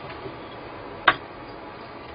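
Chopsticks knock once against a metal pot.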